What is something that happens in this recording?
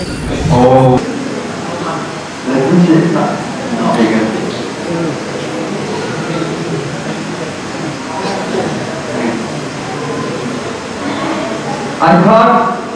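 A second elderly man speaks calmly into a microphone, heard through a loudspeaker.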